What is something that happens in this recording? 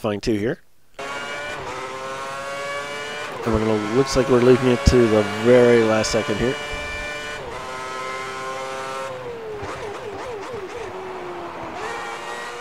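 A racing car engine whines loudly, rising and falling in pitch as it shifts gears.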